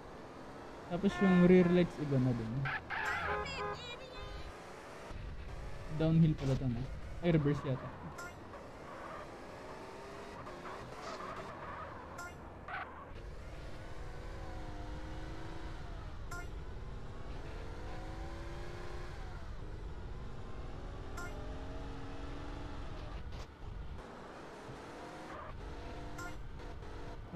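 A car engine roars and revs as the car drives.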